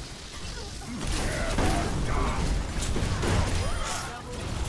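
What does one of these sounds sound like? Electric shocks crackle and boom loudly.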